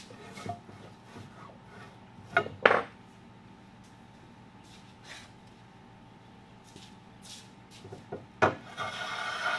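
Wooden pieces knock against a workbench.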